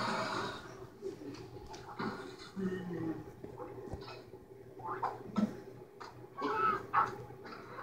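A television plays cartoon sounds through its small speaker.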